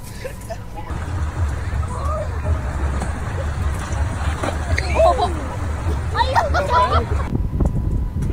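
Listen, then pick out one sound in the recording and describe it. Small waves lap at the shore.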